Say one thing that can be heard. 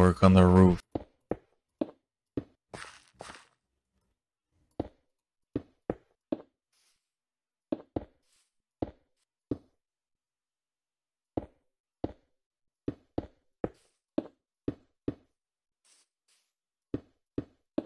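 Stone blocks are placed one after another with short, dull knocks.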